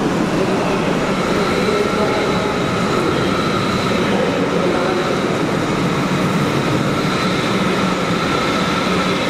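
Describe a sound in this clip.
A train's motors whine with a steady high hum as the train slides past.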